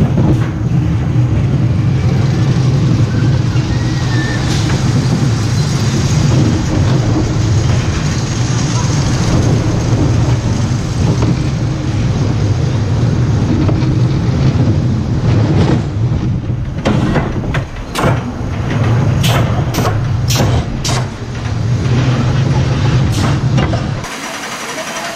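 A roller coaster car rumbles and rattles along its track.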